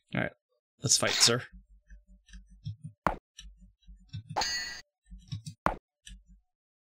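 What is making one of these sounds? Swords clash in short metallic clinks.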